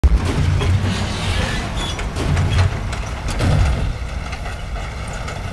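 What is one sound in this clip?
A heavy vehicle engine rumbles deeply, then fades.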